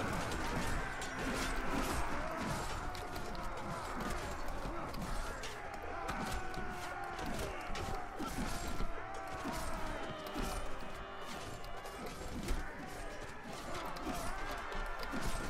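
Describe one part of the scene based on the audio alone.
Swords clash and clang repeatedly in a noisy battle.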